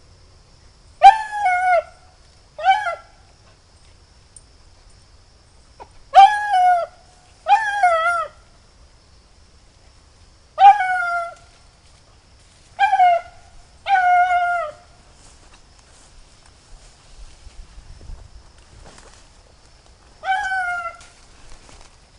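A dog yelps and barks repeatedly in short bursts.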